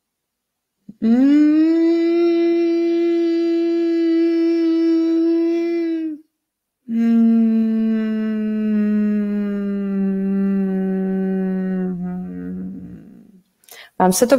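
A woman chants long, steady tones close to a microphone.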